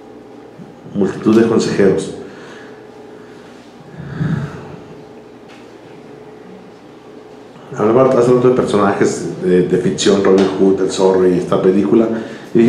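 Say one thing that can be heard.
A man speaks through a microphone with pauses, his voice carried by loudspeakers in a room.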